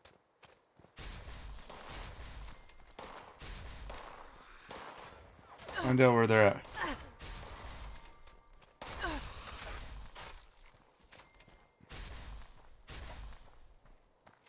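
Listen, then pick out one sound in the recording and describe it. A rifle fires repeated shots in bursts.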